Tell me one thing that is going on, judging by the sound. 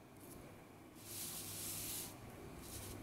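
A sheet of paper slides across a table.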